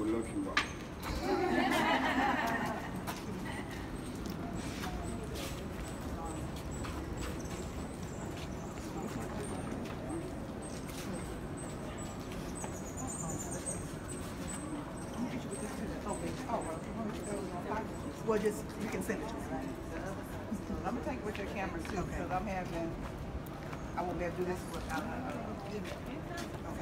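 A group of men and women chat and murmur nearby.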